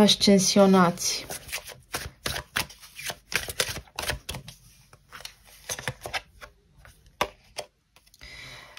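Playing cards riffle and flick as a deck is shuffled.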